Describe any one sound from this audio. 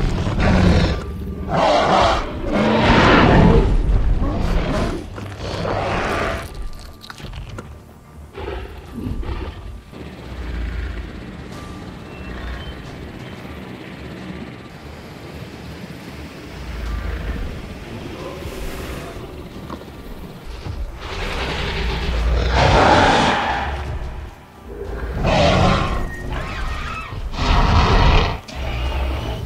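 Large creatures roar and snarl loudly.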